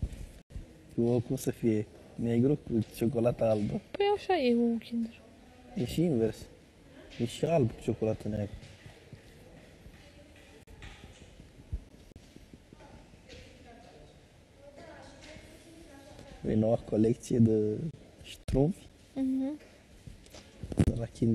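A young woman talks quietly up close.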